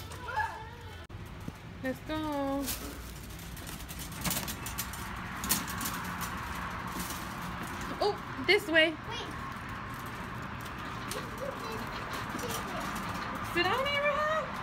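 A shopping cart rattles as it rolls.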